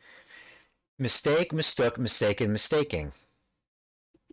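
A man speaks clearly and slowly into a close microphone.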